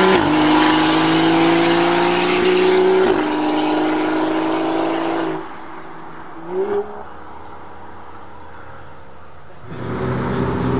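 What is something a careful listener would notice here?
A car engine roars loudly at high revs, then fades into the distance.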